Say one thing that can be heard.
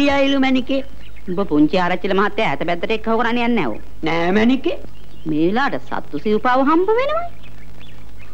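A woman speaks emotionally nearby.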